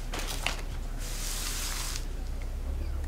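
Paper slides across a tablecloth.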